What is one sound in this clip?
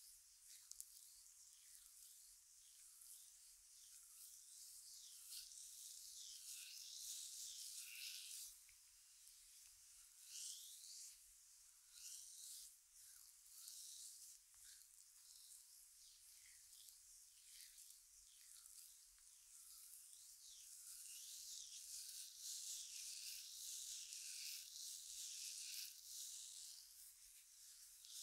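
Fingers rub and rustle through hair close by, crackling softly.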